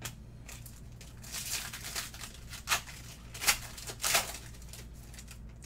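Foil wrapper crinkles and tears as a card pack is opened.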